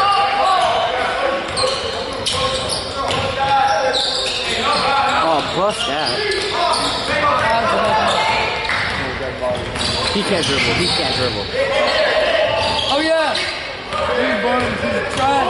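A basketball bounces on a hardwood floor with echoing thuds.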